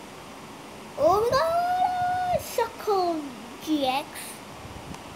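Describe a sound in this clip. A boy speaks close by, loudly and excitedly.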